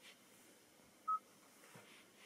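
An electronic chime sounds once.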